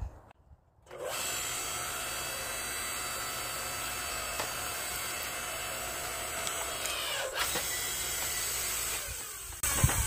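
A log splitter motor whines steadily while pushing wood.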